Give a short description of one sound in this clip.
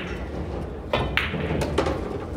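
A cue ball is struck with a sharp click.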